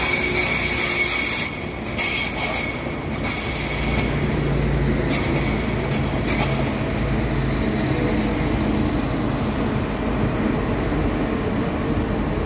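A train's engine rumbles as it pulls slowly out of an echoing station.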